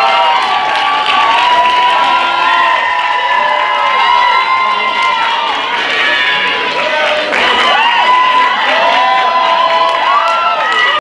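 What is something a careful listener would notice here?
A group of young men and women sings together loudly, close by.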